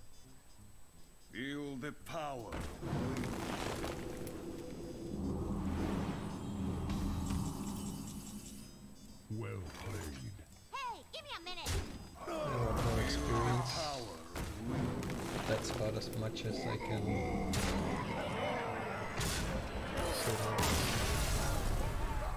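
Game sound effects chime and crash as cards are played.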